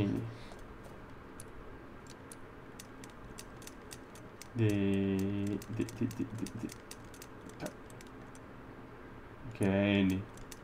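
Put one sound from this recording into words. A combination lock's dial clicks as it turns.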